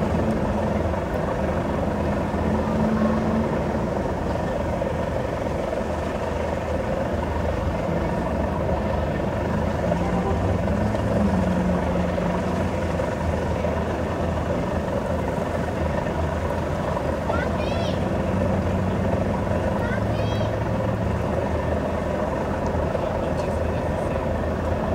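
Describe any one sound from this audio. Several men and women talk quietly outdoors a short way off.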